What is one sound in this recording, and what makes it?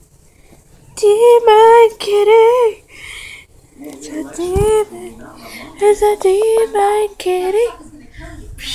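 A kitten meows loudly and repeatedly.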